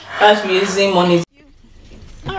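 A young woman shrieks loudly up close.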